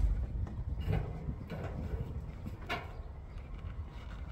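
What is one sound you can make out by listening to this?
A metal wheelbarrow clatters as it is moved.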